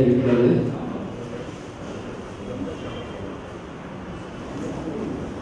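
A middle-aged man speaks into a microphone, heard through a loudspeaker in an echoing hall.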